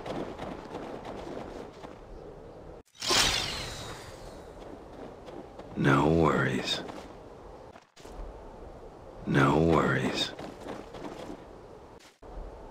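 A man talks quietly into a microphone.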